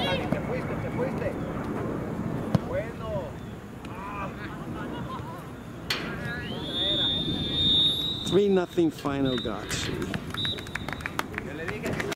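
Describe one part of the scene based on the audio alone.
Spectators and young players shout and call out across an open outdoor field.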